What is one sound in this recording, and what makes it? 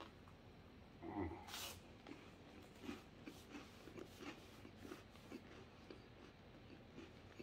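A man crunches chips while chewing close by.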